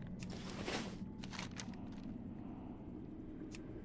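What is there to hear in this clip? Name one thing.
A map opens with a soft paper rustle.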